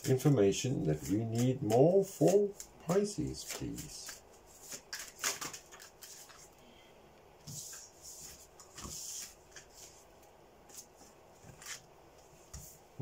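Playing cards rustle and tap as they are shuffled and laid down.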